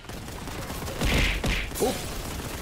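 A shotgun fires with loud booming blasts.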